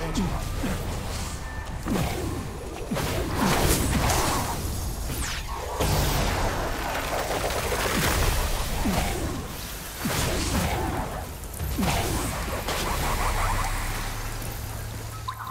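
Magic blasts whoosh and burst with crackling energy.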